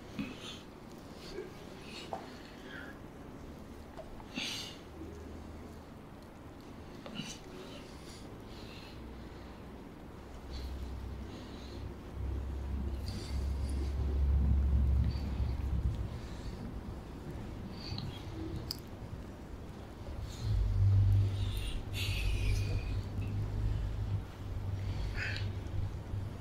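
Hands knead and rub oily skin with soft, wet squelches.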